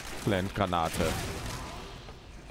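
A flash grenade bursts with a sharp bang.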